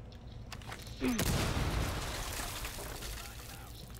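An explosion bursts and rumbles.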